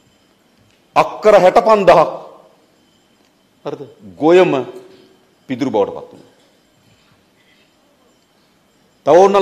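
A man speaks forcefully into a microphone, in short bursts with pauses.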